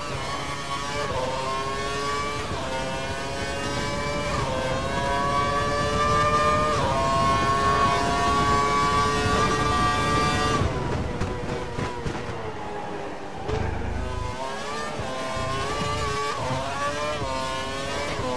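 A gearbox shifts with short jumps in engine pitch.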